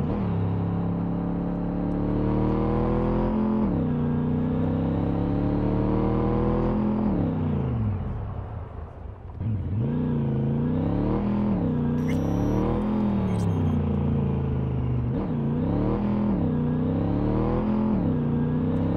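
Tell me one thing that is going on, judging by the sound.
A car engine revs up and down as it accelerates and shifts gears.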